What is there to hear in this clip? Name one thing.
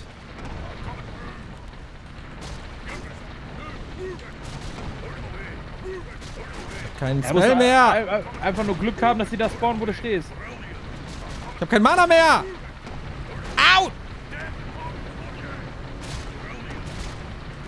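Game battle sounds clash and crackle quietly.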